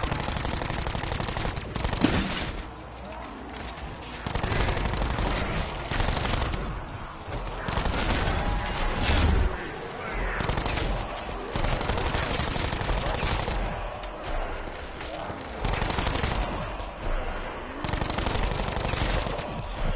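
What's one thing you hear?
Gunfire bursts out in rapid, loud shots.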